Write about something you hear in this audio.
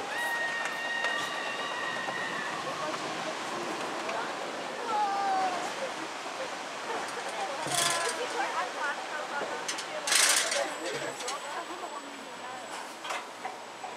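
A roller coaster car rattles as it climbs a lift hill.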